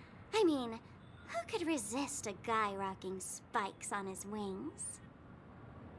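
A young woman speaks playfully and close up, as if acted for a game.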